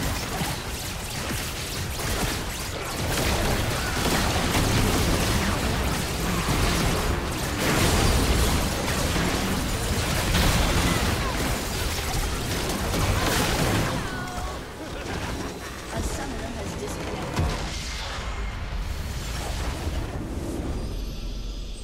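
Magic blasts, clashes and impacts burst in a busy battle.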